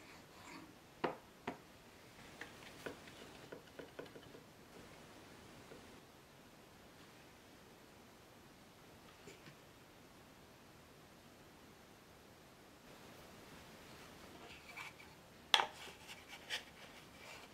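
Small wooden pieces knock and tap against a wooden bench.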